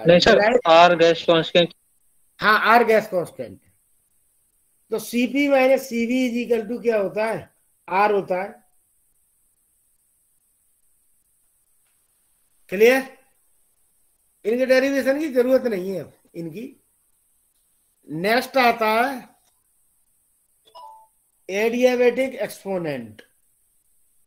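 A man speaks calmly in short phrases with pauses, heard over an online call.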